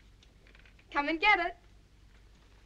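A young woman speaks brightly, close by, with a lilting voice.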